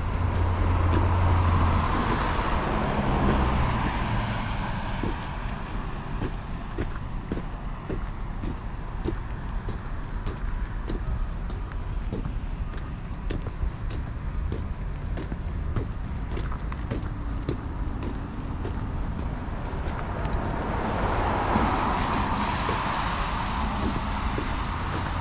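Footsteps crunch steadily on packed snow.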